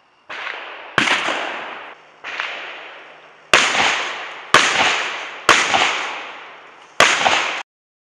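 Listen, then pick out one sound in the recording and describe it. A shotgun fires several loud shots that echo outdoors.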